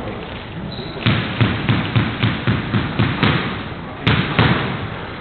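A squash ball bounces repeatedly on the floor.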